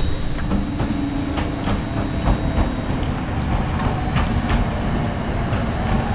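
A train rumbles slowly into a station.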